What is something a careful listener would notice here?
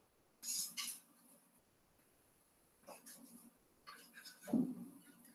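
A marker squeaks and scratches across a whiteboard in short strokes.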